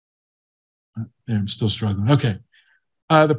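An elderly man speaks calmly through a microphone, heard as if over an online call.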